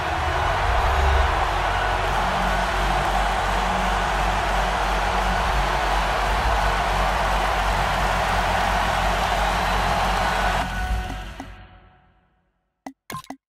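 A large stadium crowd roars steadily, then fades away.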